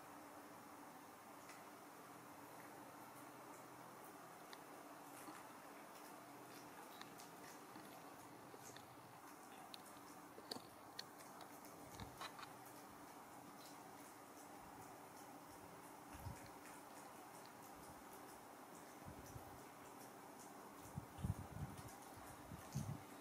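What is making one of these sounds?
Small monkeys rustle and pick softly at a woman's hair and face.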